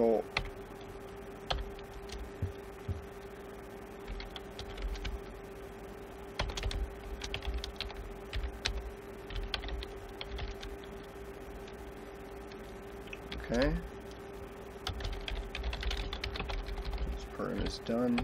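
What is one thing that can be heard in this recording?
Keys clack on a keyboard in quick bursts.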